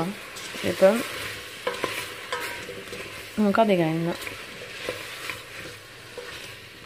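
A wooden spoon stirs and scrapes against a metal pan.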